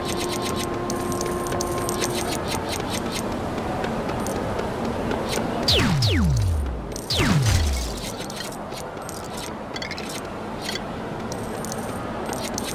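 Coins jingle as they are picked up.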